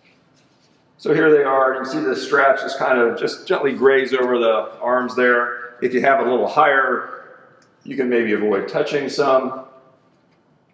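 An older man speaks calmly, explaining, close to a microphone.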